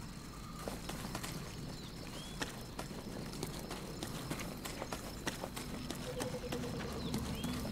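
Footsteps run quickly over grass and stone.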